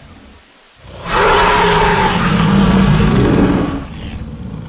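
A large dinosaur roars loudly and deeply.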